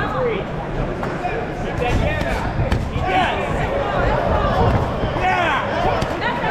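A crowd shouts and cheers in a large hall.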